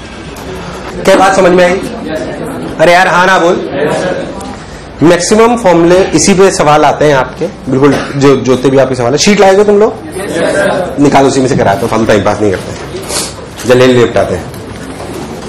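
A man lectures in a lively voice through a microphone in an echoing room.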